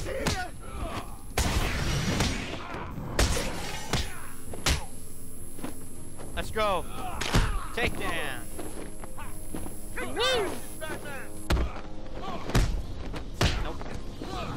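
Heavy punches and kicks thud in a brawl.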